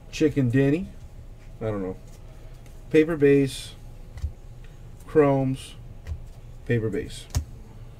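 Trading cards riffle and flick against each other.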